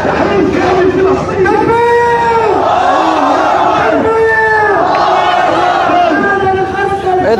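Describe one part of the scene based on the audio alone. A large crowd chants loudly in unison outdoors.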